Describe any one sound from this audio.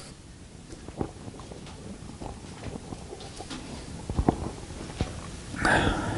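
A man sips a drink quietly.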